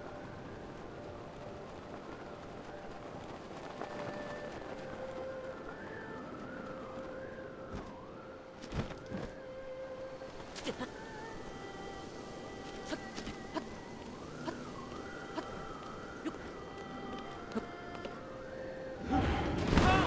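Game music plays with a wavering tune.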